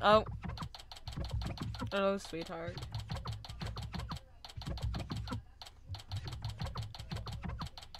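Rapid typewriter-like blips tick steadily.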